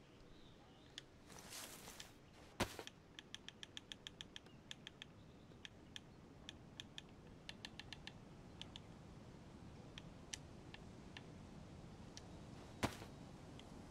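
Soft menu clicks tick in quick bursts.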